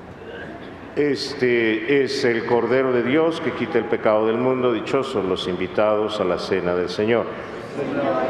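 A middle-aged man chants into a microphone in a large echoing hall.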